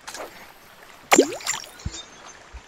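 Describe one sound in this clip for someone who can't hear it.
A fishing line whizzes out as it is cast.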